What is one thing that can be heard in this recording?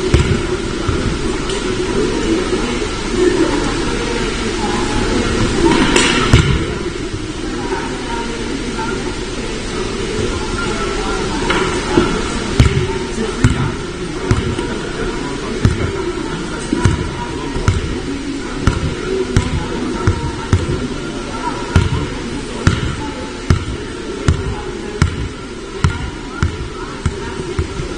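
A crowd of spectators chatters in a large echoing hall.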